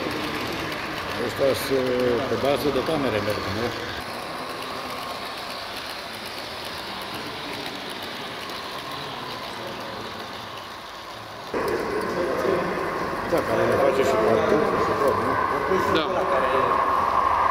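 Model train wheels squeal on curving track.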